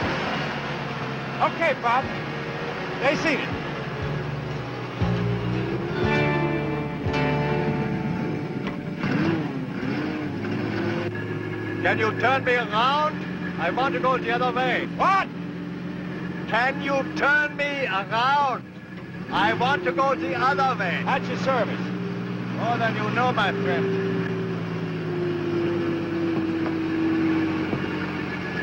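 A forklift engine rumbles steadily.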